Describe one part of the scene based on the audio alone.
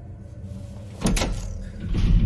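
A button clicks once.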